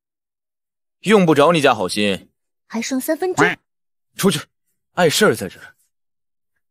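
A young man answers irritably close by.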